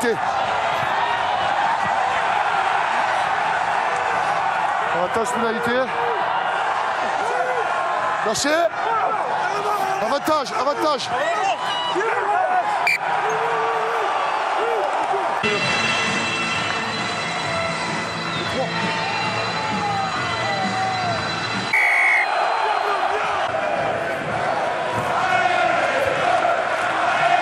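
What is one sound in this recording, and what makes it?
A large crowd roars and cheers in a stadium.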